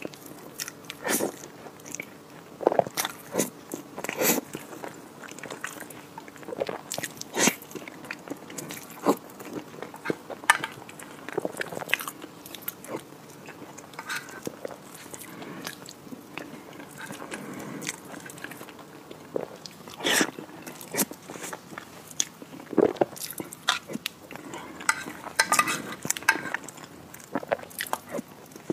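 A woman chews and slurps soft food close to a microphone.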